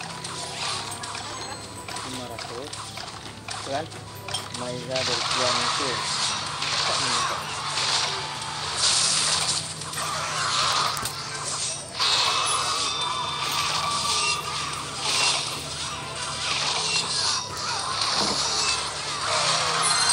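Lively game music plays throughout.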